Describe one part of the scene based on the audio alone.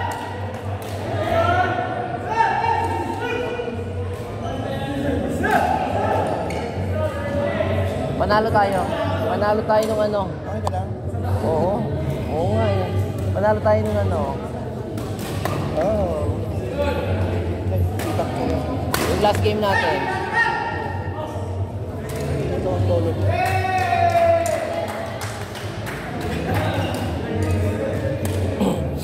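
Several men talk and call out to each other in a large echoing hall.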